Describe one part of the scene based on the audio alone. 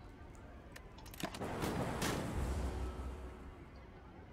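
A bolt of lightning crackles and booms.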